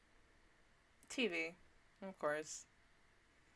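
A young woman speaks briefly, close to a microphone.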